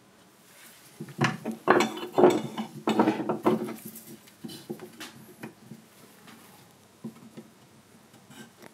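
A gouge scrapes and shaves wood in short strokes.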